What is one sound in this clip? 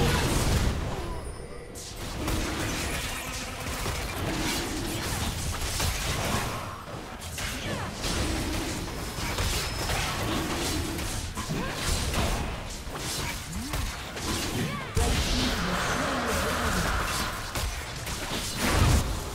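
Game spell effects crash and whoosh in a fierce battle.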